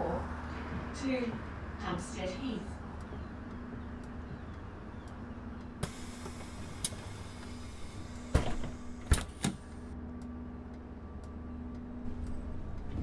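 A bus engine idles with a low, steady hum.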